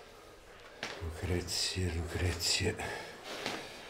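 An elderly man calls out a name from another room.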